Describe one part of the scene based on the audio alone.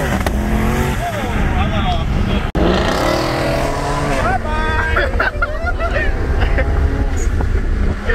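Wind and tyres rush loudly past a car.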